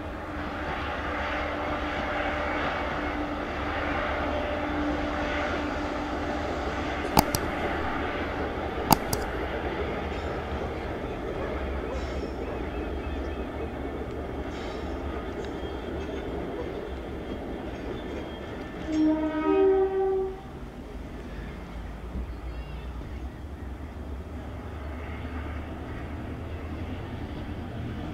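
Diesel locomotives rumble and drone steadily in the distance.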